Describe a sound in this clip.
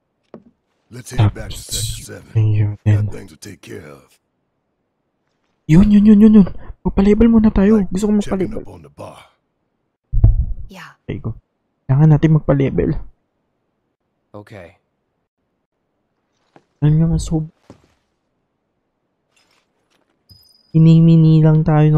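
A young man talks close to a microphone, with pauses.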